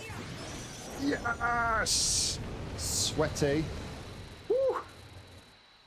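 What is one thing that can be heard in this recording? A man speaks excitedly into a close microphone.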